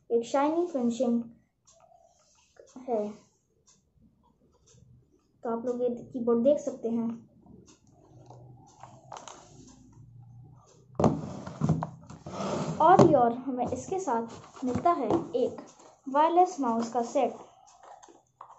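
A young boy talks calmly and close by.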